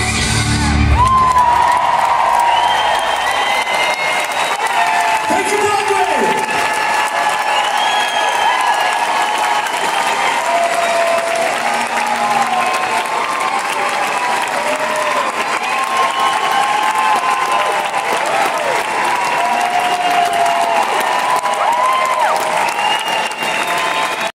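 People in a crowd whistle shrilly.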